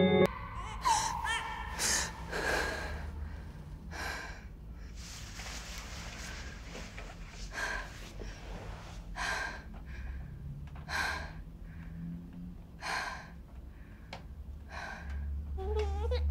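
A young woman gasps and breathes heavily nearby.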